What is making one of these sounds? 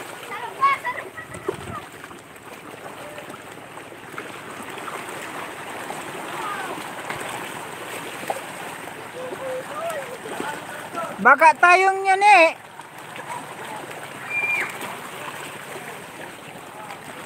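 Waves wash and splash over rocks at the shore.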